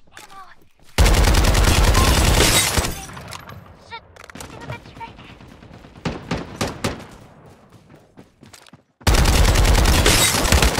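An automatic rifle fires rapid, loud bursts.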